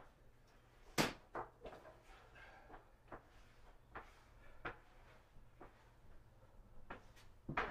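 Objects knock and clatter on a workbench nearby.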